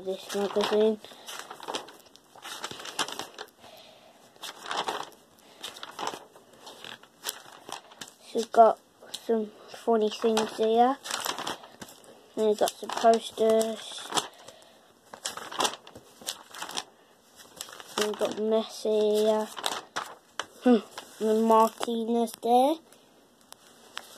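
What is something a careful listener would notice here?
Glossy magazine pages rustle and flip.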